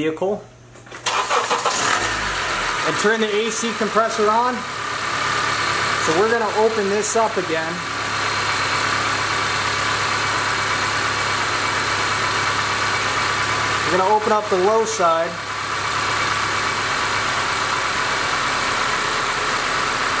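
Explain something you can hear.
A car engine runs with a steady hum.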